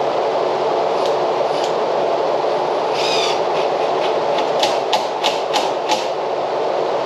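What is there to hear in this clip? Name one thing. A cordless drill drives screws into a wooden frame in short bursts.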